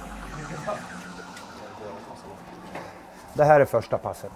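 Several men chatter in the background.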